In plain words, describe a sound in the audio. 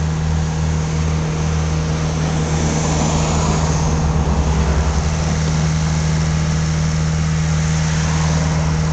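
A freight train rumbles past nearby with a steady low roar.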